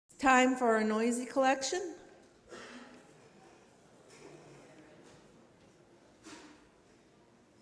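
An elderly woman speaks calmly through a microphone.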